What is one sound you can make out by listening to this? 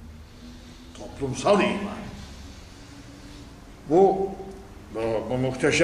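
An elderly man speaks slowly and solemnly into a microphone, in a reverberant room.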